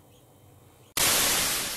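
A burst of static hiss ends the recording.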